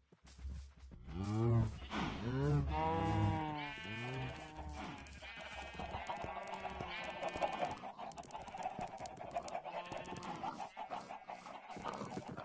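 Cows moo loudly, one after another.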